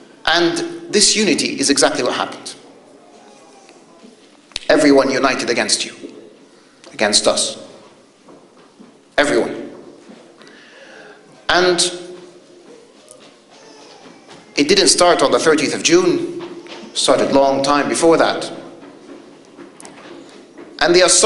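A man speaks forcefully into a microphone, in bursts with pauses, in a large echoing room.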